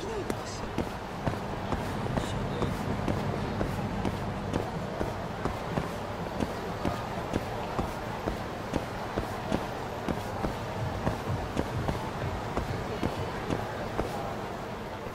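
Footsteps walk briskly on hard pavement.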